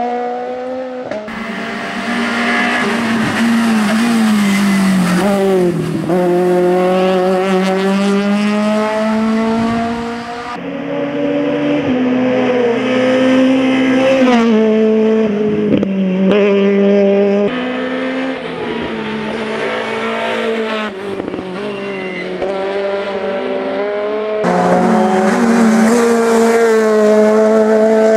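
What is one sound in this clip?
A rally car engine revs hard and whines through the gears as the car speeds past.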